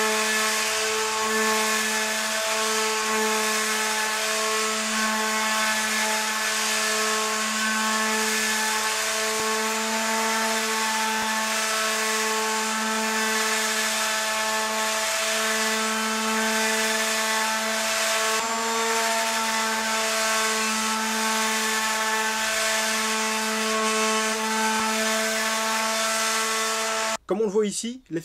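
An electric sander buzzes steadily against wood.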